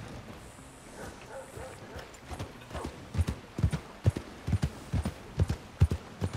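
A horse's hooves clop steadily on a dirt track.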